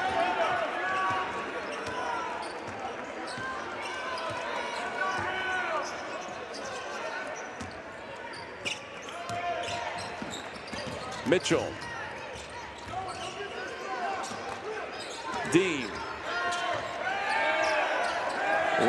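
A basketball bounces on the court as it is dribbled.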